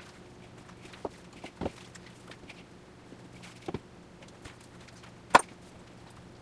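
Hands knock and tap on a cutting board.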